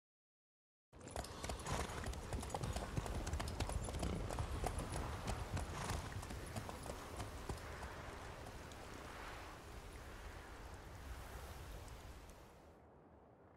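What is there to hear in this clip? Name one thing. Horses' hooves clop slowly on a dirt path.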